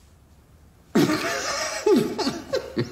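A man laughs loudly close by.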